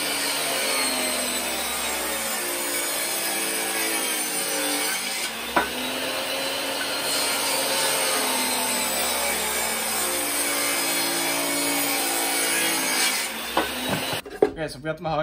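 A table saw runs with a steady high whine.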